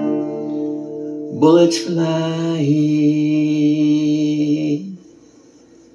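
An acoustic guitar chord rings out and then stops.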